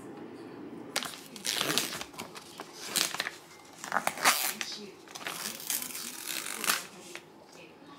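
A plastic film crinkles and tears as it is peeled off.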